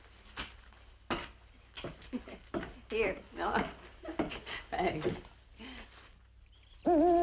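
A woman speaks cheerfully nearby.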